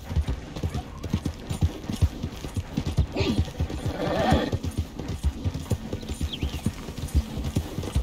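A horse's hooves thud steadily at a gallop on soft ground.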